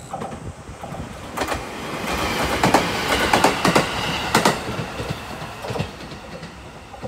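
A train rumbles past close by and fades into the distance.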